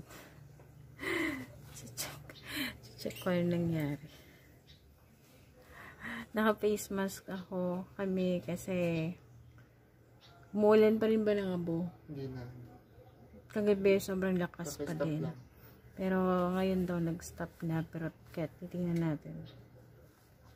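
A woman talks close up, softly and with animation.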